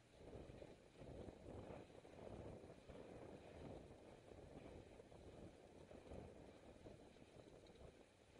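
Wind buffets loudly across a microphone while riding outdoors.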